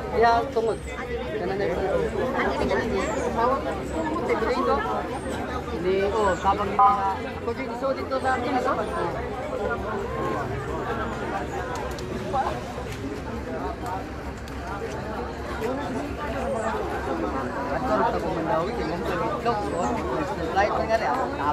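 A crowd of men and women talk and shout all at once, close by, outdoors.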